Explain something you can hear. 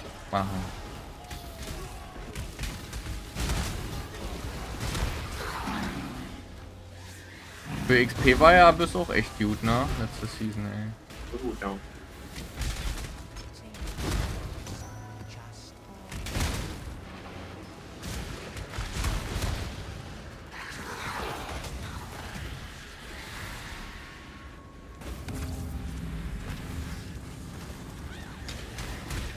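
Game spells crackle and burst in quick, loud bursts.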